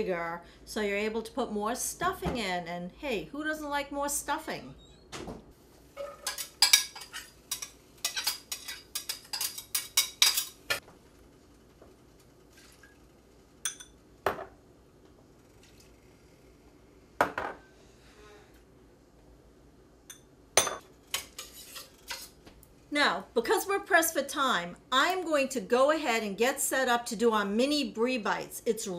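A woman talks calmly and close by.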